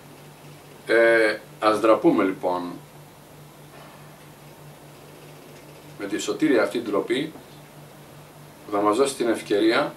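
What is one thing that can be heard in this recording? An older man speaks calmly and deliberately into a close microphone, with pauses between phrases.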